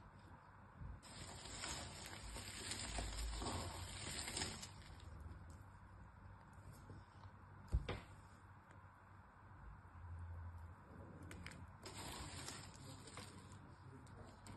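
Soap shavings rustle and crunch under hands.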